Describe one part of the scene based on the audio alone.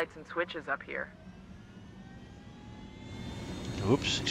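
A helicopter engine whines and rises in pitch as it starts up.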